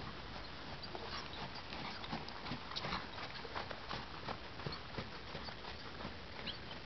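A horse's hooves thud in a canter on soft sand, coming close.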